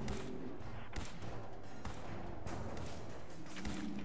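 A laser beam zaps.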